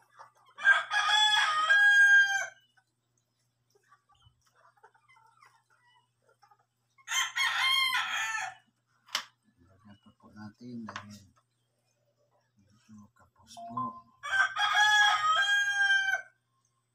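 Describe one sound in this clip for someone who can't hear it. Small plastic pieces click softly.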